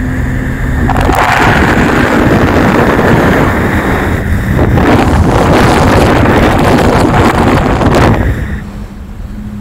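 Wind rushes loudly past an open window.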